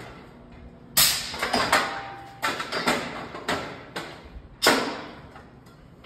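Steel clamp bars clank and bang against a steel rack.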